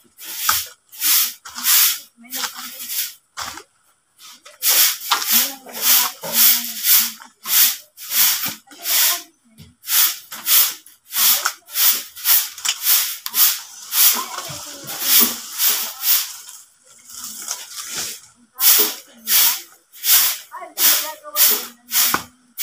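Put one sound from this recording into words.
A stiff broom sweeps the ground in quick, repeated scraping strokes.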